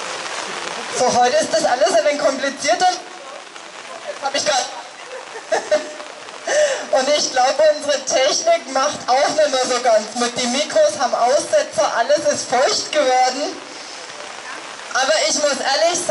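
A woman speaks clearly and steadily through a loudspeaker, outdoors.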